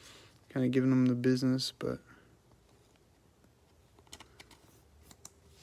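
Plastic crinkles softly as a card is handled.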